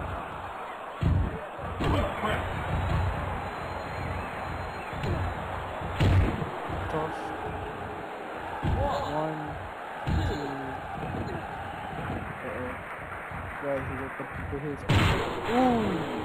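Heavy bodies thud onto a wrestling ring mat.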